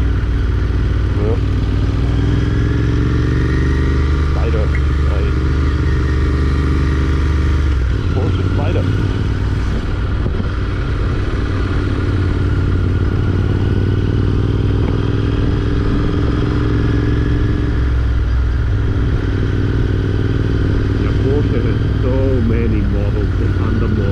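A motorcycle engine rumbles steadily up close, rising and falling as it shifts gears.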